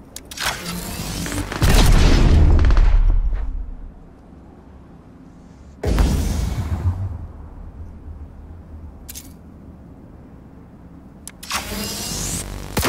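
A rifle fires loud bursts of shots, each followed by a booming echo.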